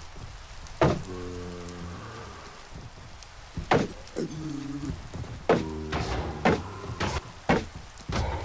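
A zombie groans in low, wavering moans.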